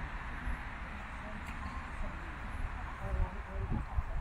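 A golf club strikes a ball with a sharp click.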